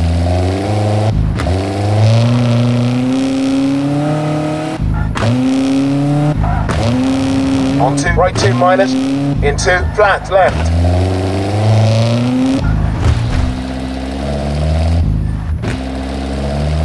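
A rally car engine revs hard, rising in pitch and dropping with each gear change.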